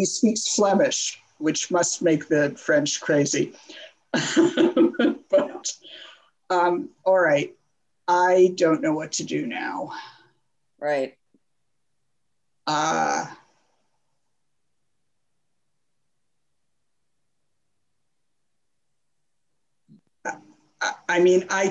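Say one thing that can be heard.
An older man speaks calmly over an online call, pausing now and then.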